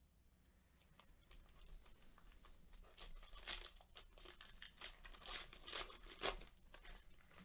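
A plastic wrapper crinkles and tears as it is pulled open.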